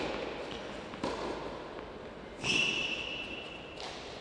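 A tennis ball bounces on a hard court several times.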